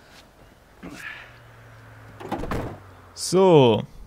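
A car door shuts.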